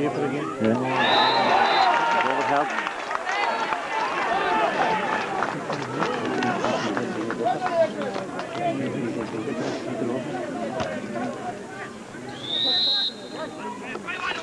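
A referee's whistle blows short blasts.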